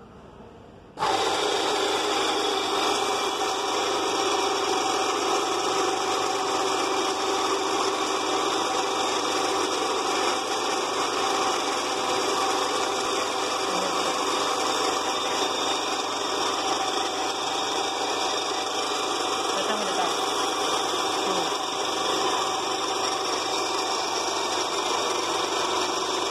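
An electric belt sander starts suddenly and runs with a steady loud whir.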